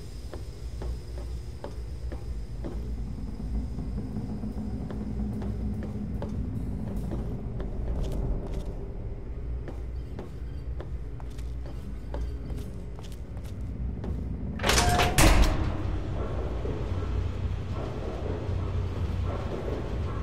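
Footsteps clank on a metal floor.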